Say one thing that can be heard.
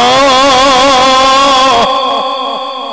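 A man chants loudly through a microphone in a wavering, ornamented voice.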